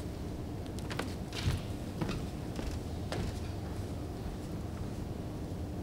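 Footsteps tap across a wooden stage.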